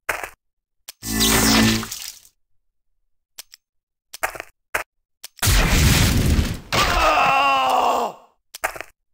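Fighting creatures clash with loud bursts of impacts and magic effects.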